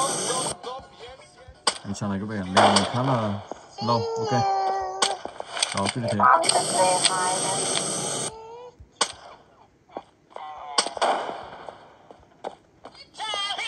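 Game gunfire crackles from a tablet speaker.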